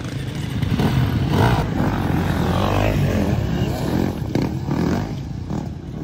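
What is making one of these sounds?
Dirt bike engines rev loudly and roar up close.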